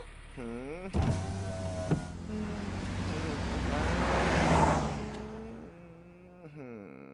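A car engine runs and pulls away.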